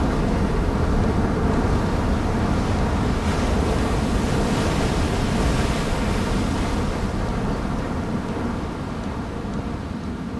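A huge machine churns heavily through water with a deep, rumbling roar that eases off toward the end.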